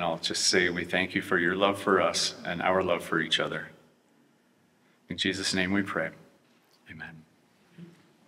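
A man speaks calmly into a microphone, heard through a loudspeaker in an echoing room.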